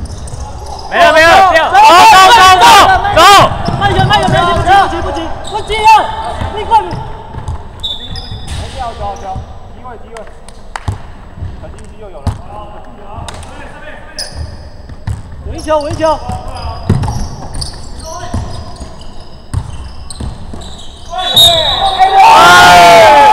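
Sneakers squeak on a hardwood court in a large echoing gym.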